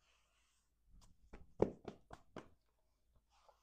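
Hands pat around a jeans waistband.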